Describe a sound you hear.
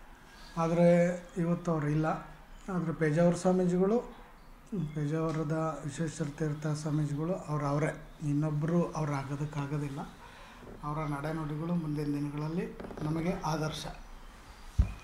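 A middle-aged man speaks slowly and steadily, close by.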